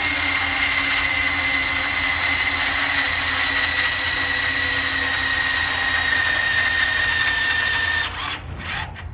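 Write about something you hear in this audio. A battery torque wrench whirs, tightening a large nut.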